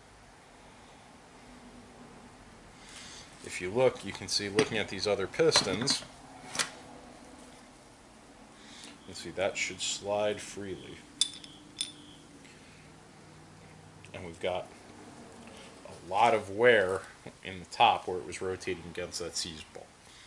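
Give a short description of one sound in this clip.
Metal engine parts clink softly as they are handled.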